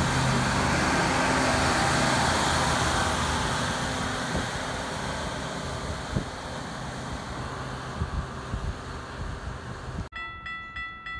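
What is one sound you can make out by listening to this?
A rail maintenance vehicle rumbles past close by and slowly fades.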